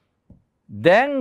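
A man speaks calmly and clearly, as if teaching, close to a microphone.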